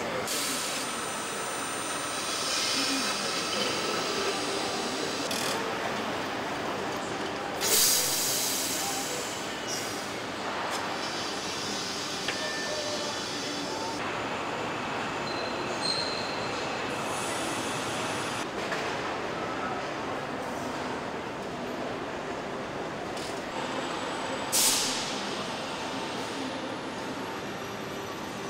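Machinery hums and clatters steadily in a large echoing hall.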